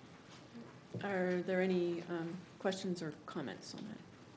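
Another woman speaks through a microphone in a large room.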